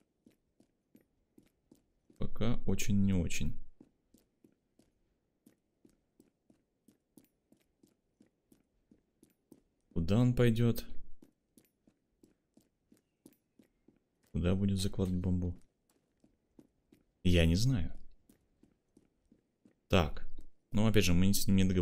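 Footsteps tap softly and steadily.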